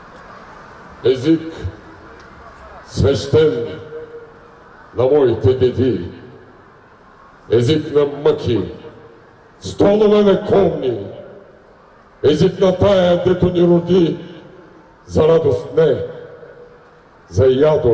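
A middle-aged man reads out loud into a microphone over loudspeakers, outdoors, in short phrases with pauses.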